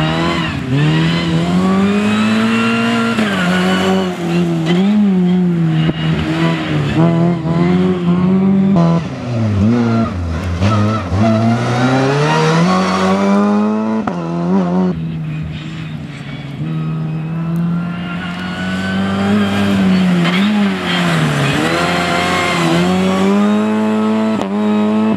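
A small rally hatchback races past at full throttle, its engine revving up through the gears.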